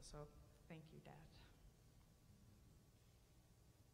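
A woman speaks softly into a microphone in an echoing hall.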